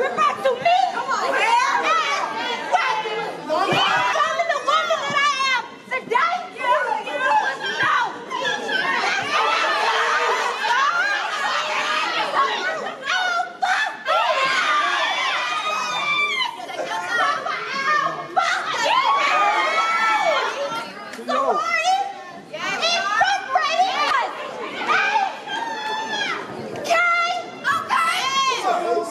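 A crowd of young women cheers and screams loudly in a large echoing hall.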